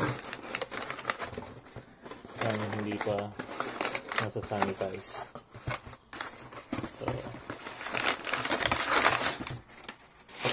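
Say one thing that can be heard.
Crumpled packing paper rustles and crackles as a hand digs through it inside a cardboard box.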